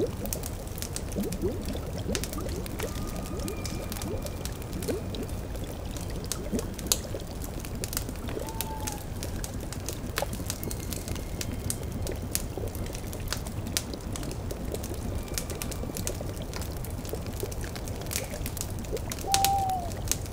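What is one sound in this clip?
A pot bubbles softly.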